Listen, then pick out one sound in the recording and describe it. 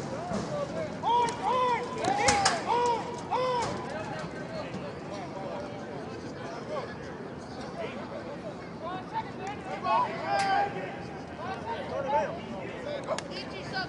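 Young men shout and cheer loudly from nearby outdoors.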